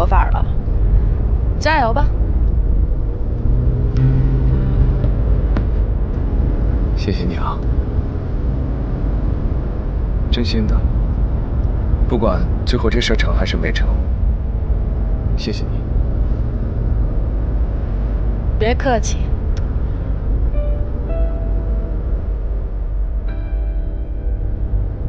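A car engine hums low and steadily.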